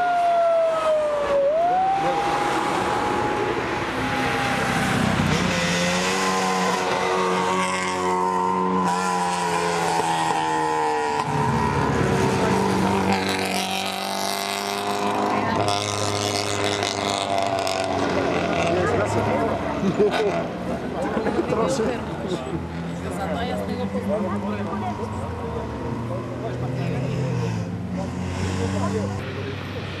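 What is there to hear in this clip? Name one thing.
Rally car engines roar and rev loudly as cars speed past one after another.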